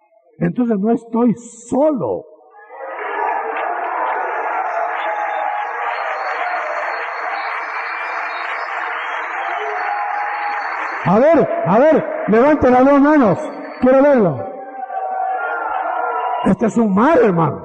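A man preaches loudly and with passion into a microphone.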